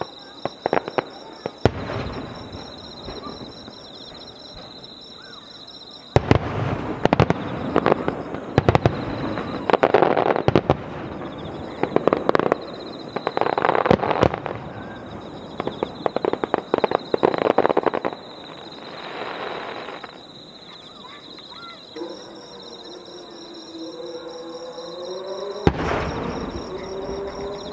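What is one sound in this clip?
Fireworks boom and crackle in rapid bursts, echoing far off outdoors.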